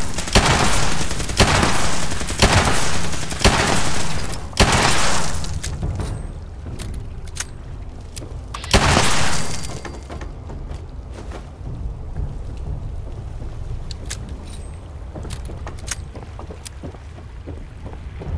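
Footsteps thump on wooden boards.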